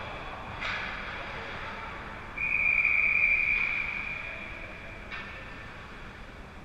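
Skates scrape and swish across ice in a large echoing rink.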